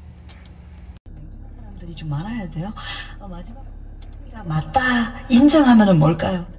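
Music plays from a car radio.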